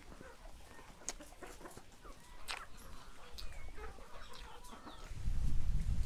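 A man bites into a crisp apple and chews.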